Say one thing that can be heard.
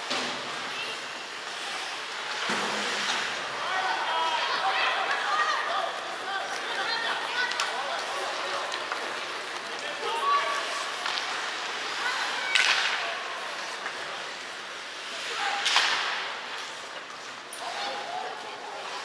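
Skates scrape across the ice in a large echoing arena.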